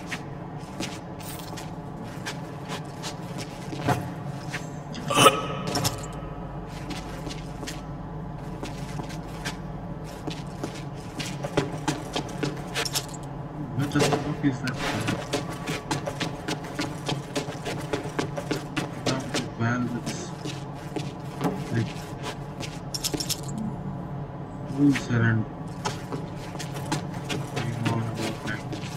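Footsteps walk steadily across a hard floor.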